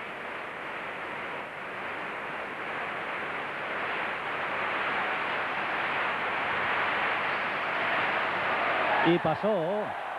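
A large crowd roars and cheers in a big echoing hall.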